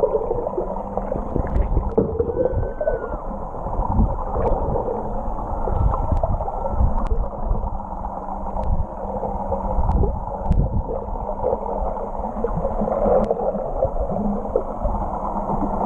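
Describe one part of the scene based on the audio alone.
Water swishes and rumbles, muffled as if heard underwater.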